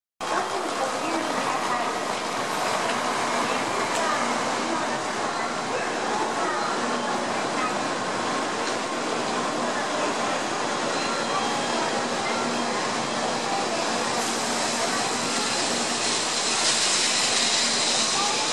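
A high-speed train rushes past close by with a steady roar of air and wheels.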